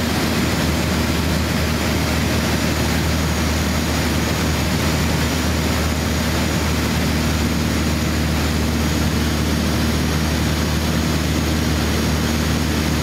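Jet engines roar steadily inside an aircraft cabin.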